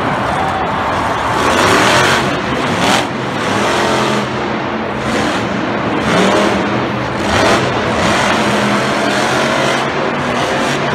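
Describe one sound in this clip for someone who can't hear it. A monster truck engine roars loudly and revs.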